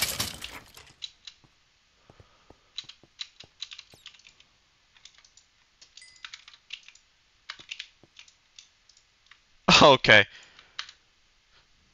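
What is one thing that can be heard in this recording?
Soft clicks tap quickly, over and over.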